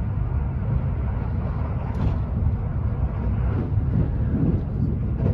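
A train rumbles along the tracks at speed, heard from inside a carriage.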